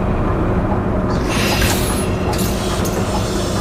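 Air brakes hiss sharply as a bus stops.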